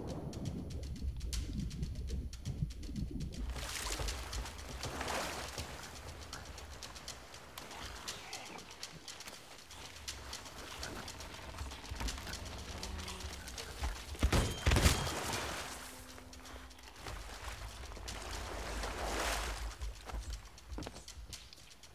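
Water splashes as a swimmer moves through the sea.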